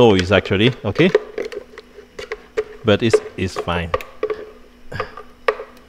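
A spatula scrapes food out of a blender jar.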